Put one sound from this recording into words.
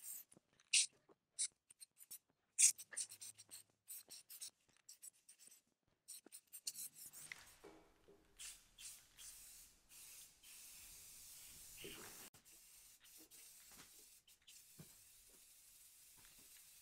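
An aerosol can hisses as paint sprays out in short and long bursts.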